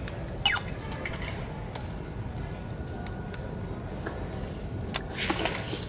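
Keyboard keys click and clatter.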